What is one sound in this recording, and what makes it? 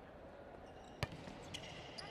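A volleyball is struck hard with a sharp smack.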